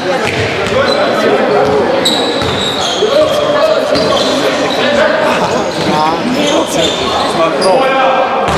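Young men shout and call out to each other on the court.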